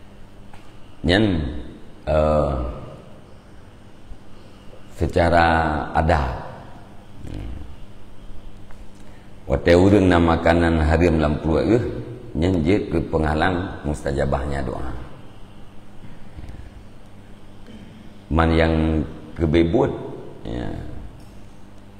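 A middle-aged man speaks calmly into a close microphone, in bursts with pauses.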